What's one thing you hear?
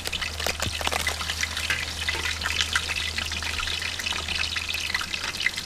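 Crisp lettuce leaves rustle and crackle as hands tear them.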